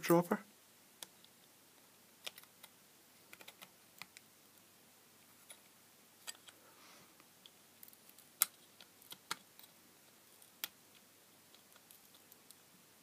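Pliers click and scrape against a small metal part.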